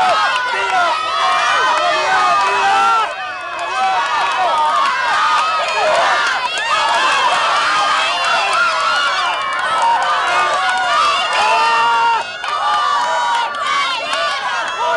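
A crowd of young people outdoors shouts and cheers loudly.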